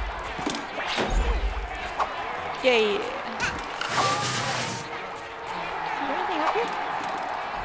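Cartoonish game sound effects chirp and squeak in quick bursts.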